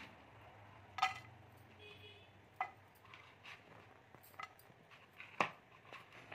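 Chopped ginger drops and clatters into a pan.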